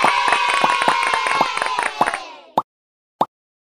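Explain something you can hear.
A cheerful game jingle chimes.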